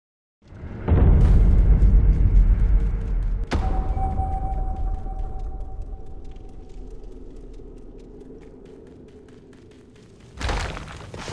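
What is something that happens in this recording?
A deep booming swell with a ringing chime rises and slowly fades.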